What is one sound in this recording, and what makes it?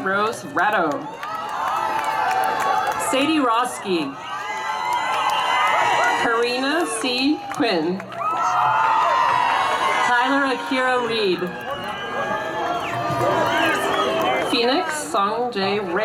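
A crowd cheers and shouts nearby.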